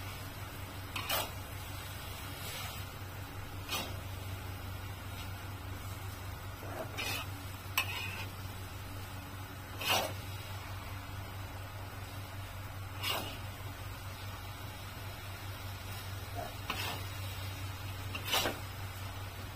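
A metal utensil scrapes and clinks against a wok.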